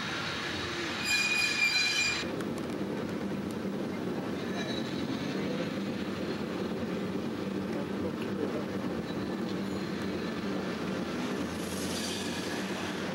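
A cable car rumbles and rattles steadily along its tracks.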